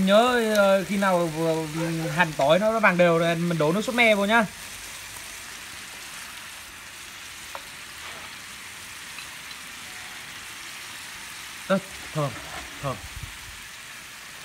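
A small gas flame hisses steadily under a pan.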